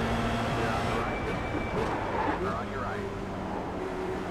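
A racing car engine changes pitch as the car shifts down through the gears.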